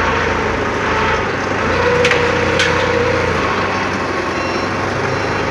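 A forklift engine runs steadily in a large echoing shed.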